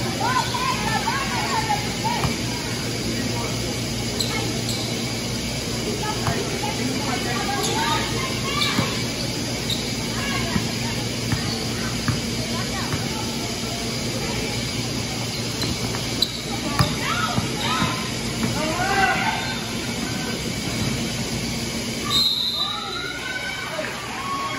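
Voices of a crowd chatter and call out throughout a large echoing gym.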